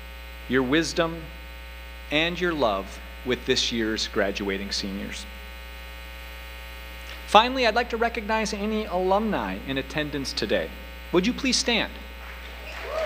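A man speaks calmly into a microphone over a loudspeaker in a large echoing hall.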